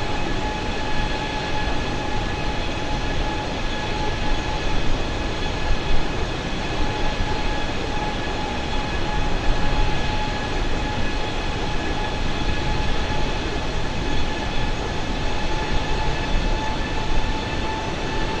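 Jet engines drone steadily with a high, even whine.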